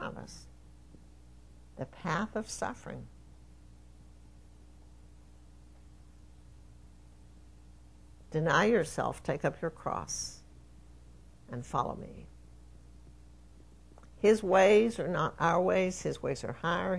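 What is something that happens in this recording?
An elderly woman speaks slowly and firmly into a microphone, with long pauses.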